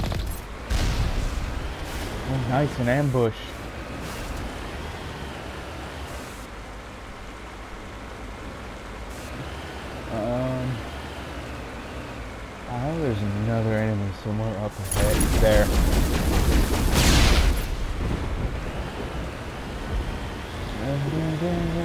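A vehicle engine rumbles as it drives.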